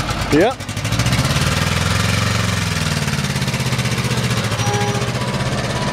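A motorcycle engine starts with a roar and revs loudly nearby.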